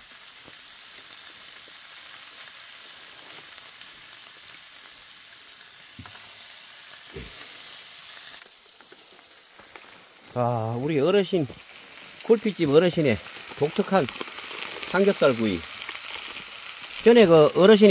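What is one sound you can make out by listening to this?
Meat sizzles in a hot frying pan.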